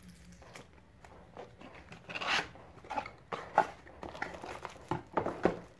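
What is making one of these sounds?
A cardboard box slides open and scrapes.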